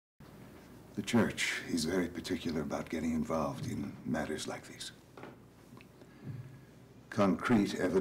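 An elderly man reads aloud calmly from a book.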